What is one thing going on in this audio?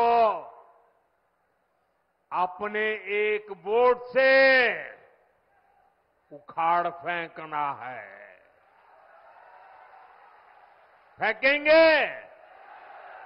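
An elderly man speaks forcefully into a microphone over loudspeakers.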